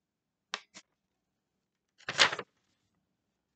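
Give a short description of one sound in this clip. Paper rustles and crinkles in a boy's hands.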